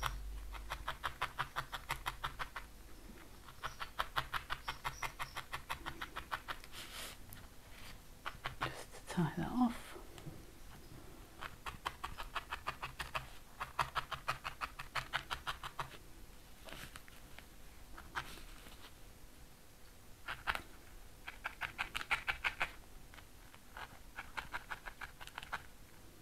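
A felting needle jabs rapidly into a foam pad in quick bursts of soft pokes.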